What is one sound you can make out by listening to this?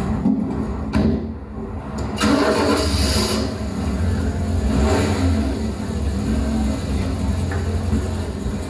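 An electric guitar plays through an amplifier.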